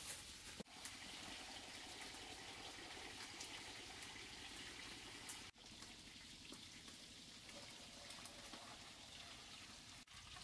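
A knife scrapes and taps against food held in the hand.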